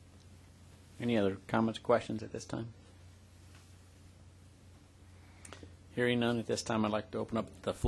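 A man speaks calmly into a microphone, heard through a sound system.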